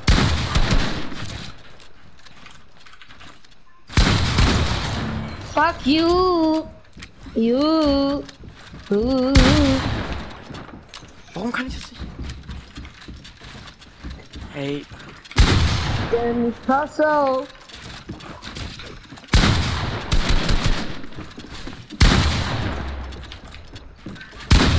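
Wooden walls clatter and thud as they are quickly built in a video game.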